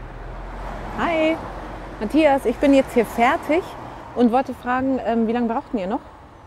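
A woman talks calmly on a phone.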